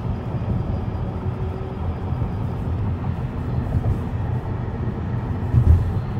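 A truck's tyres hum loudly as it drives alongside.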